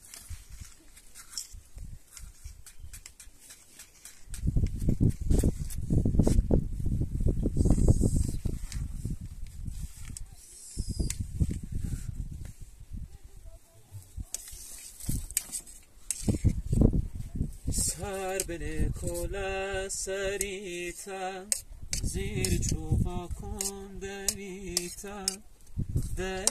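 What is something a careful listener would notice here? Dry twigs snap and crackle close by.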